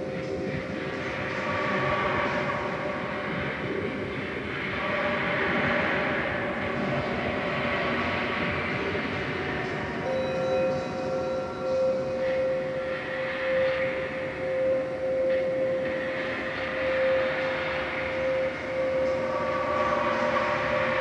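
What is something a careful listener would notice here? Electronic music with swelling noisy drones plays through loudspeakers.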